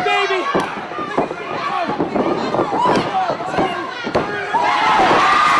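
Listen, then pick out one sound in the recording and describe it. Bodies thud against a wrestling mat.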